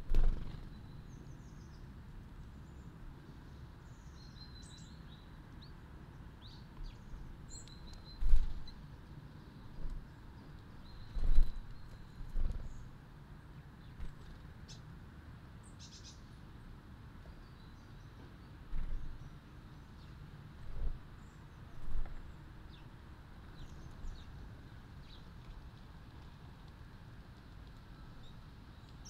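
Small birds chirp and twitter outdoors.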